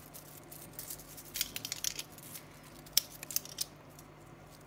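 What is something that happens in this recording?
A metal watch bracelet clinks and clicks.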